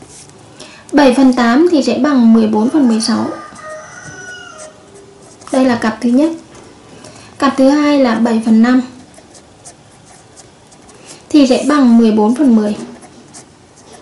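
A felt-tip pen squeaks faintly as it writes on paper.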